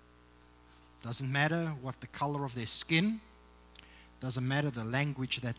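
A young man speaks calmly into a microphone in an echoing hall.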